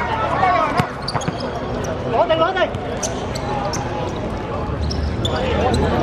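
Players shout to each other across an open court.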